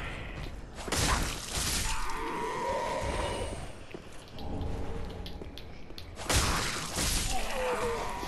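Metal blades clash and slash with loud impacts.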